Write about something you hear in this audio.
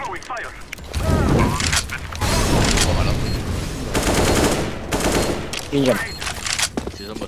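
Gunshots ring out nearby in rapid bursts.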